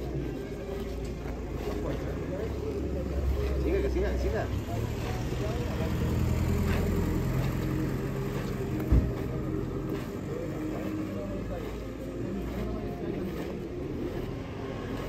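Men talk quietly nearby.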